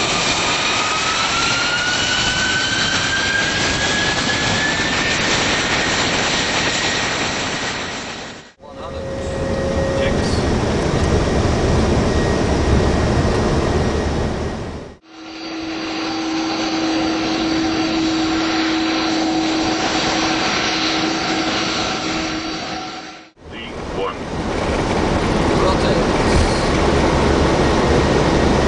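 Jet engines roar loudly as a plane speeds down a runway.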